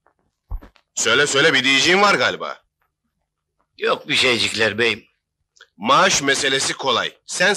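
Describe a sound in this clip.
A man speaks close by in a firm, steady voice.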